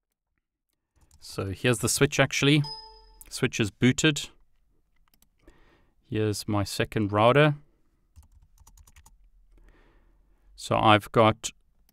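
A man speaks calmly and close into a microphone, in short bursts.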